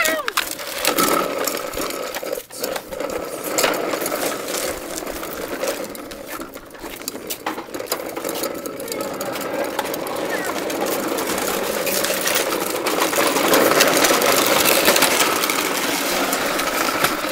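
Plastic toy wheels roll and scrape along concrete.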